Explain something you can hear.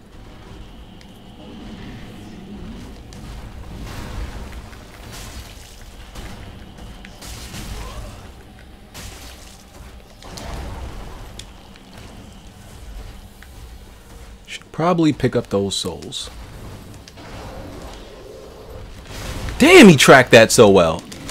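Metal weapons clang and thud in a heavy fight.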